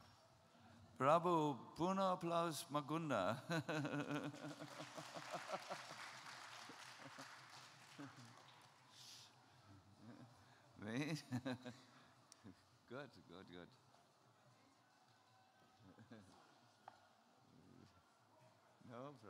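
A middle-aged man laughs heartily into a microphone.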